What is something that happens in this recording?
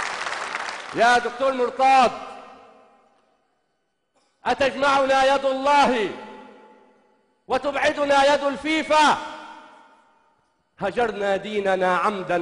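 A man recites with feeling through a microphone, pausing between lines.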